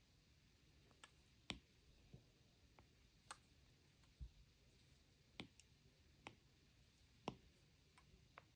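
A stylus taps on a tablet's glass.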